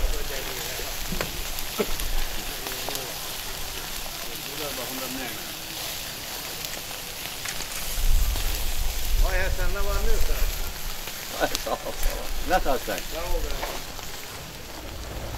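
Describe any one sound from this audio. Meat sizzles and crackles over hot coals.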